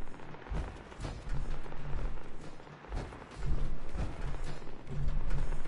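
Heavy metal footsteps thud on a wooden floor.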